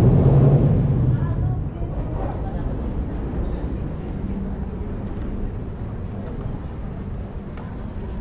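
Footsteps pass on a paved walkway outdoors.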